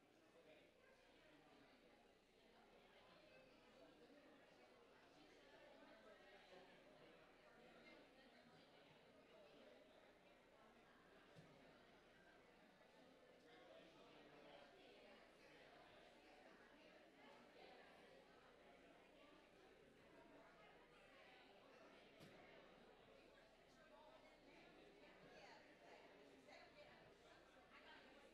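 A crowd of men and women chat and greet one another in a large echoing hall.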